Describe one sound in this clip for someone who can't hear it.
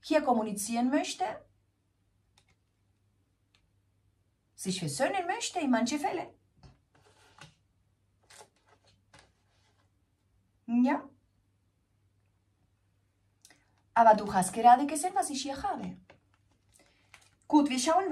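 A woman speaks calmly and closely into a microphone, in short phrases with pauses.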